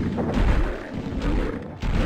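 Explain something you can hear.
A heavy axe swooshes through the air.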